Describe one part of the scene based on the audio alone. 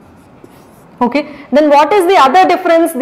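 A young woman speaks clearly into a microphone, explaining with animation.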